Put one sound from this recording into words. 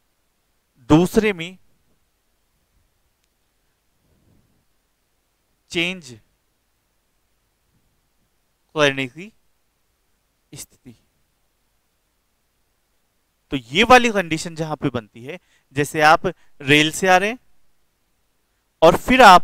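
A man speaks in short bursts, close to a microphone, explaining calmly.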